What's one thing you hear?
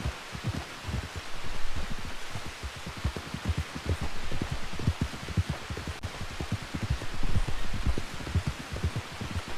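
Horse hooves thud steadily on a dirt trail.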